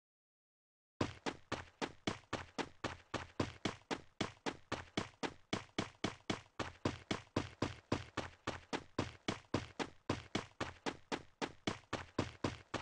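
Footsteps run quickly and evenly over the ground.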